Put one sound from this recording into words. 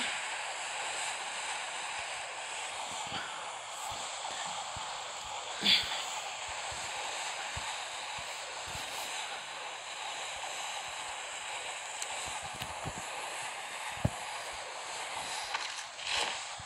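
Wind rushes steadily past during a fall through the air.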